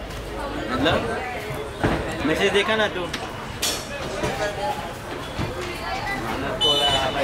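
Men talk nearby in a casual way.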